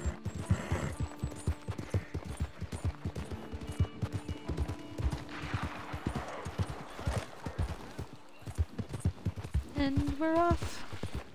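Horse hooves thud steadily on a dirt trail.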